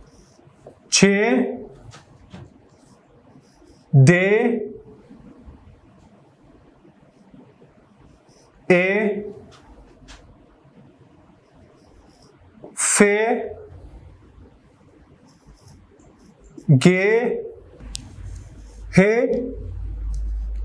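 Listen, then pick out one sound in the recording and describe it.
A young man speaks short words clearly, pausing between them.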